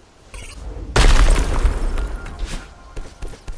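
Heavy stone blocks rumble and crash.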